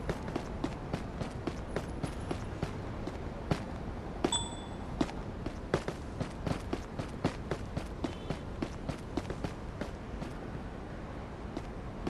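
Footsteps tap quickly and steadily on a hard path and then on grass.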